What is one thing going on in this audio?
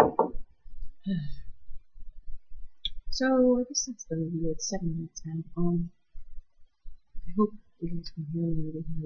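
A young woman speaks close to a microphone, in a low, casual voice.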